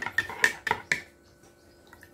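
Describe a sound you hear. A spoon clinks against a ceramic mug.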